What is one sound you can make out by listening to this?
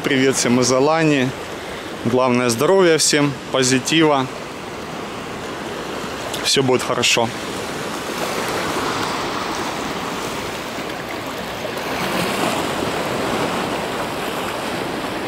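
Small waves lap and splash gently against rocks.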